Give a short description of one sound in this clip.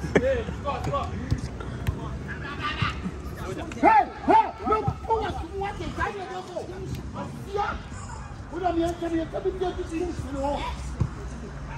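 Men shout and call out nearby, outdoors.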